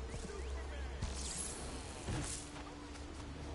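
A burst of power blasts with a loud whoosh.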